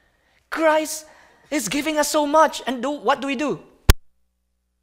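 A man speaks with animation.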